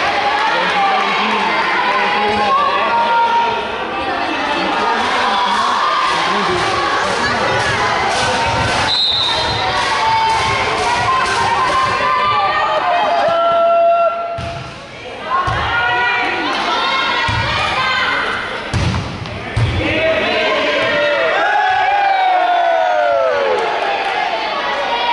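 Spectators shout and chatter in a large echoing hall.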